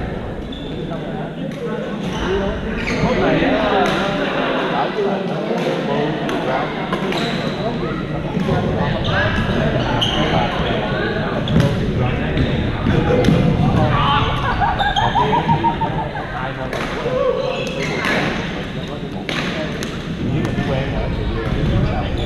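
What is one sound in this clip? Men's voices call out and chatter across the courts.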